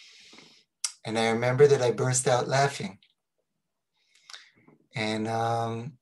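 A middle-aged man speaks calmly and cheerfully over an online call.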